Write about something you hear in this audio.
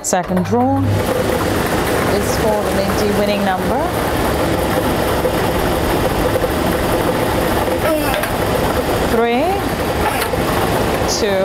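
Plastic balls rattle and clatter steadily inside a spinning draw machine.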